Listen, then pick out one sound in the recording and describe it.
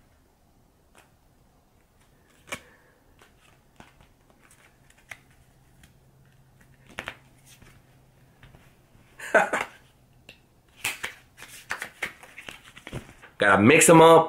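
Playing cards riffle and snap during shuffling.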